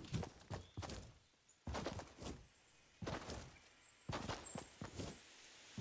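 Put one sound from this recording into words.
Footsteps run over grass.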